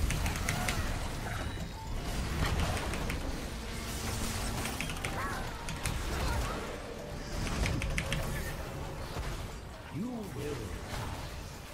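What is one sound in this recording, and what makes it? Game spells and hits crackle and clash in quick bursts.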